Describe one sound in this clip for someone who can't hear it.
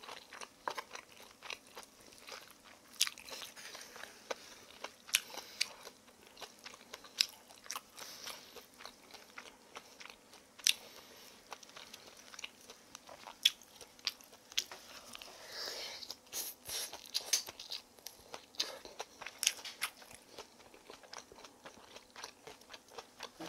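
Chopsticks click and scrape against a wooden bowl.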